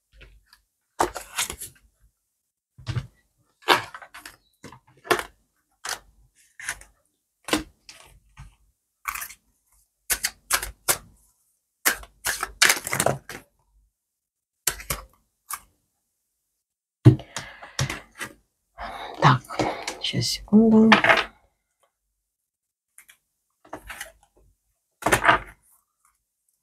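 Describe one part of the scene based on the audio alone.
Cards slap and slide against a cloth-covered table.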